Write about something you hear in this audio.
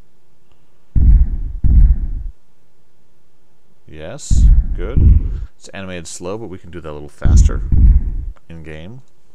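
Heavy thuds boom as a creature moves.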